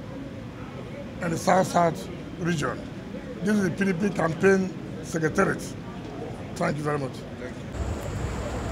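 A middle-aged man speaks calmly and firmly close to microphones.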